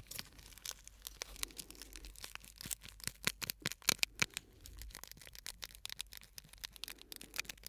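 Crinkly foil crackles and rustles close to a microphone.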